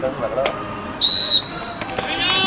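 A referee's whistle blows one short, shrill blast.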